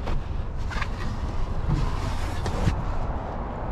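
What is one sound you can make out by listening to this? Plastic creaks and knocks as hands pull at a car's door trim.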